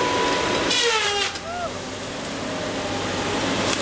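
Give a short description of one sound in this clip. A tall tree creaks and swishes as it topples.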